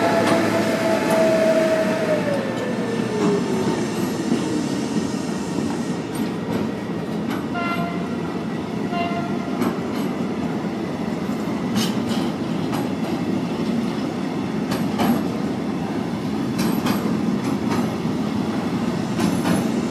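Freight wagon wheels clatter over rail joints.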